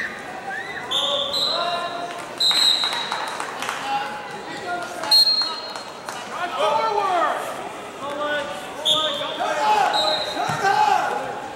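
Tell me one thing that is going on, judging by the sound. Shoes squeak sharply on a wrestling mat.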